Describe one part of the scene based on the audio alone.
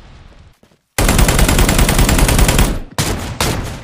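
Gunshots ring out in a rapid burst.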